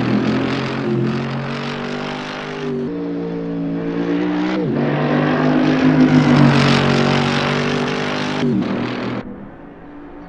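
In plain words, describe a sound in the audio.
A sports car engine roars loudly as the car drives, shifting gears.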